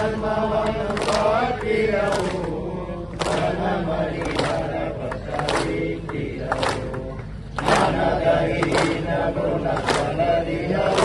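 A crowd of men chants together loudly outdoors.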